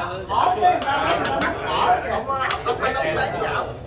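A chess clock button clicks as it is pressed.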